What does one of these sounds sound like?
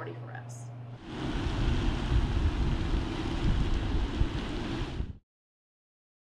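A fountain splashes into a pond outdoors.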